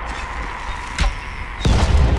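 A bowstring snaps as an arrow is loosed.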